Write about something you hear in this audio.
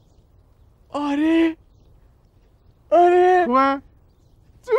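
A man cries out loudly in a high, excited voice.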